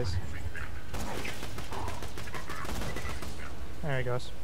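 A gun fires several sharp shots.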